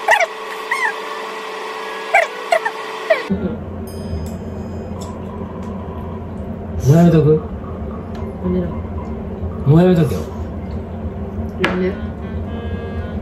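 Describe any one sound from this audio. A young man talks and laughs nearby.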